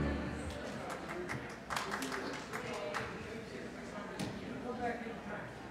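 A crowd of men and women chat quietly in a large echoing hall.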